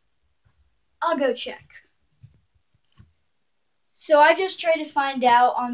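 A young boy speaks with animation close to a microphone.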